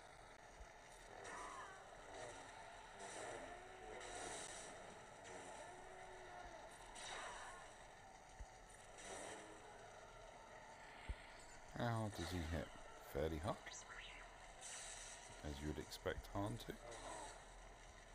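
Blasters fire in quick bursts.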